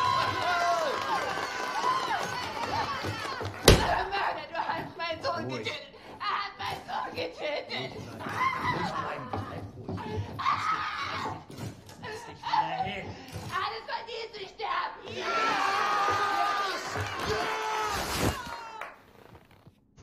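A woman speaks agitatedly.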